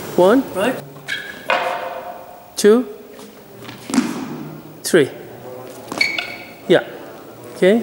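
Wooden swords clack against wooden shields in a large echoing hall.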